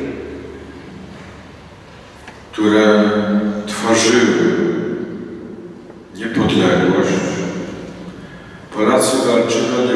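A man speaks calmly through a microphone, echoing in a large hall.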